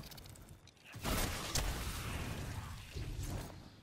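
Electricity crackles and zaps sharply.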